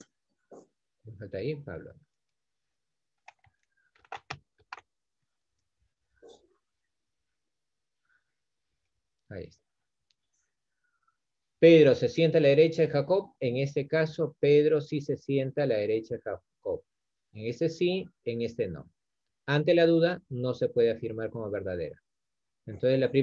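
A man speaks calmly into a microphone, explaining, with pauses.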